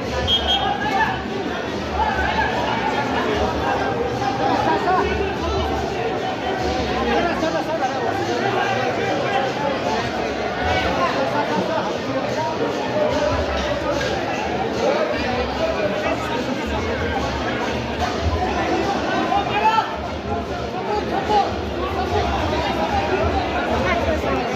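A large crowd of men shouts and cheers loudly outdoors.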